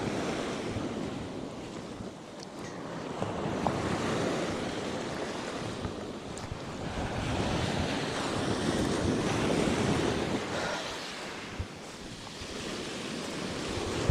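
Footsteps crunch on pebbles.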